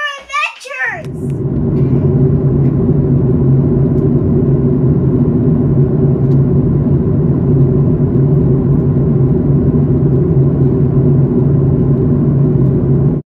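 Jet engines drone steadily inside an airplane cabin.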